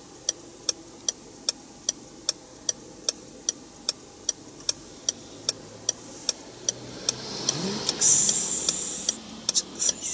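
A car engine idles quietly.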